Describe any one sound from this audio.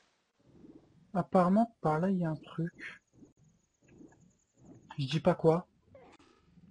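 A young man talks close into a headset microphone with animation.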